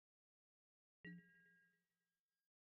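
A short bright chime rings once.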